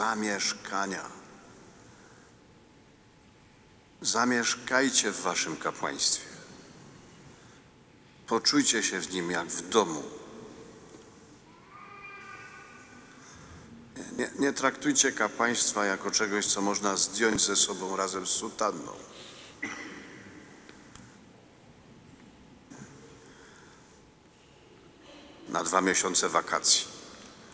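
An elderly man speaks calmly into a microphone in a large echoing hall, pausing between phrases.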